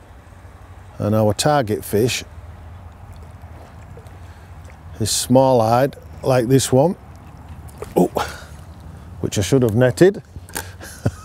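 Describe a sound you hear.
A man speaks calmly and close by, in short phrases.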